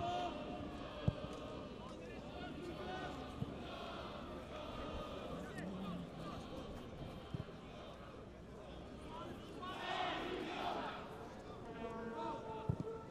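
A crowd murmurs and chants in a large open stadium.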